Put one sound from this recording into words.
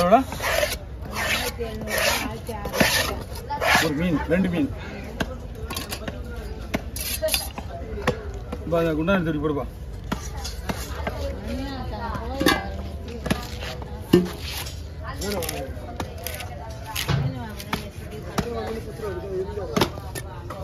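A heavy knife chops and thuds on a wooden block.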